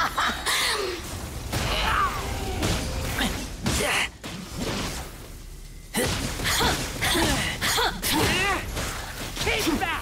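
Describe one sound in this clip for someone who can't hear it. Electric blasts crackle and zap in quick bursts.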